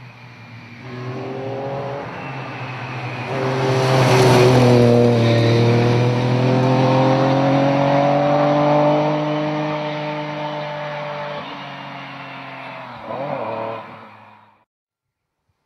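Rally car tyres crunch and scatter gravel.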